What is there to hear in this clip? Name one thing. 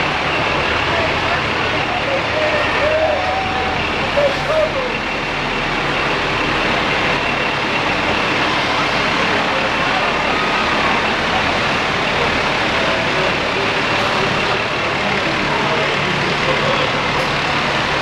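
Fire truck engines rumble slowly past.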